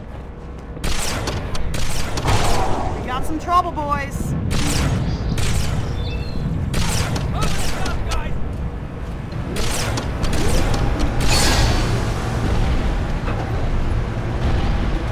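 Energy weapons fire in rapid, sharp bursts.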